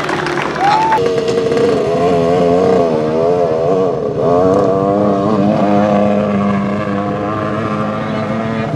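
A dirt bike engine roars and then fades away as the bike rides off.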